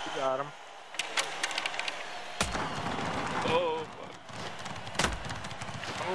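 A hockey puck clacks sharply off sticks.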